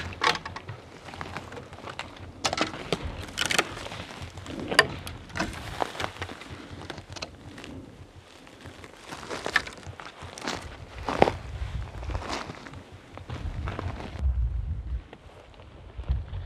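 Footsteps crunch and snap through dry brush and fallen branches.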